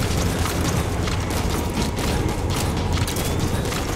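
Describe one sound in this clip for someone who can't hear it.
Footsteps run across dirt ground.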